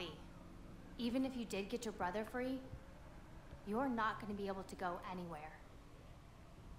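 A woman speaks calmly and firmly.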